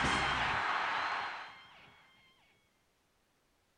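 A large crowd cheers loudly, then fades away.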